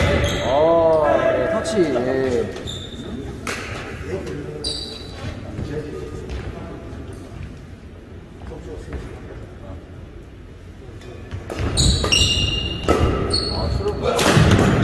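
Shoes squeak sharply on a hard court floor in an echoing hall.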